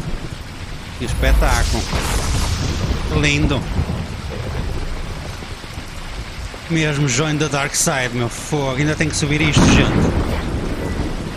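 A man talks with animation, close to a headset microphone.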